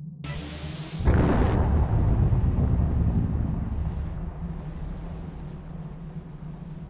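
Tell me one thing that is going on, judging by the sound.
A spacecraft engine roars loudly as it speeds off, then slowly fades.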